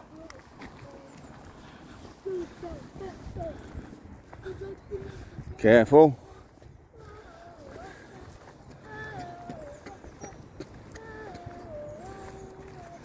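A dog's paws patter on a path and rustle through grass.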